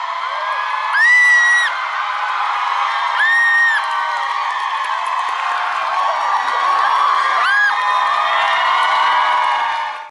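A large crowd screams and cheers loudly.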